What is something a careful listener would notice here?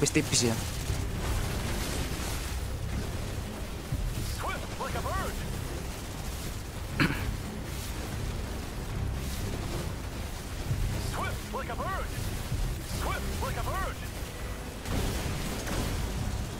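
A dense battle rumbles steadily.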